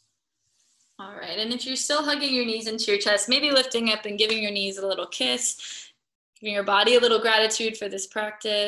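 A young woman speaks calmly and warmly, close to a microphone.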